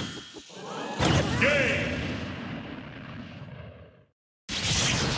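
A huge explosion booms and fades away.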